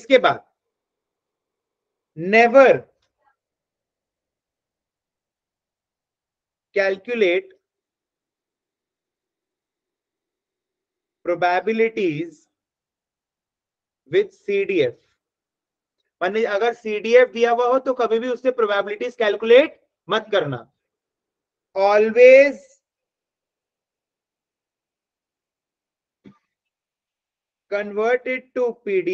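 A young man speaks calmly through a microphone, in short bursts with pauses.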